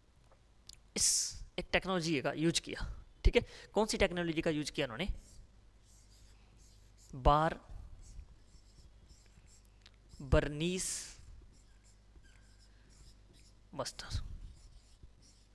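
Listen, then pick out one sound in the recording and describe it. A young man speaks through a headset microphone in short bursts, calmly explaining.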